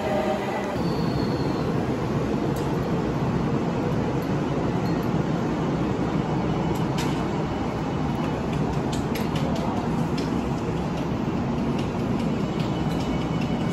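A train rumbles steadily past, its wheels clattering on the rails.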